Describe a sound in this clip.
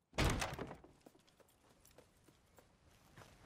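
Soft footsteps crunch on grass outdoors at night.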